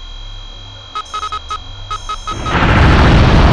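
A targeting signal beeps rapidly.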